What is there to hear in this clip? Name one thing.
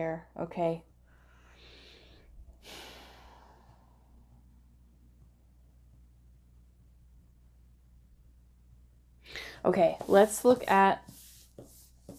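Cards slide and tap on a table.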